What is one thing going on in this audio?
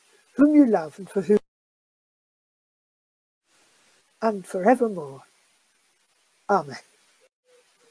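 An elderly woman speaks calmly in short, broken bursts over an online call.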